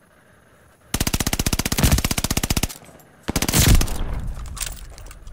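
An automatic rifle fires rapid, loud bursts.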